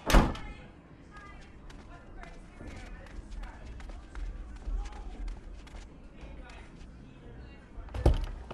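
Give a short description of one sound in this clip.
Footsteps walk along a hard floor.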